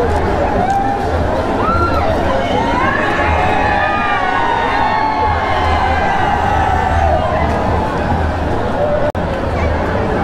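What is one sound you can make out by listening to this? A large crowd of men and women chatters and shouts loudly outdoors.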